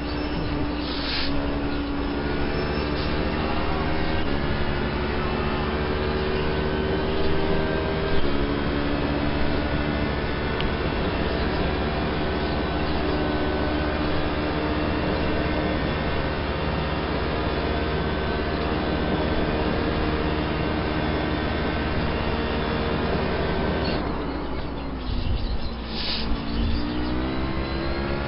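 A racing car engine roars loudly at high revs, shifting gears as it speeds along.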